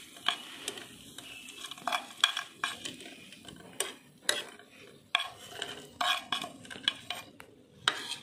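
Pieces of fried food tumble from a metal pan onto a plate with soft knocks.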